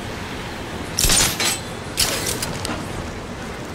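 A cloth cape flaps loudly in a rush of wind.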